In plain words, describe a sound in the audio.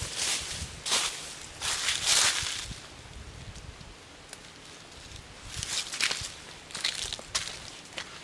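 Dry leaves rustle as a man rummages in them with his hands.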